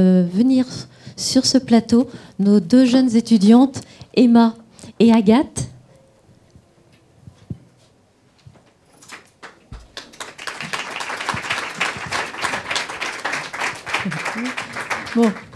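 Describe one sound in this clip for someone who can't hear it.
A middle-aged woman speaks calmly into a microphone.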